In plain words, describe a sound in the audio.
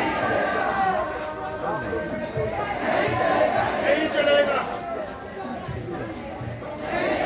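A crowd of men and women talks and calls out close by, outdoors.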